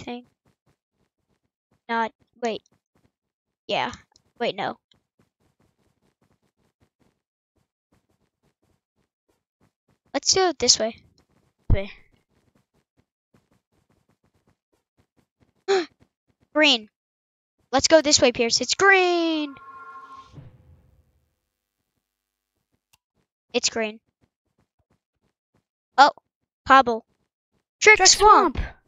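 A second young boy talks excitedly in short bursts, close to a microphone.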